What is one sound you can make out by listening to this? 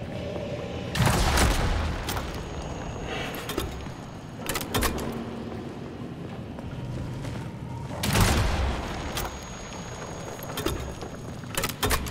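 A gun fires loud bursts of shots.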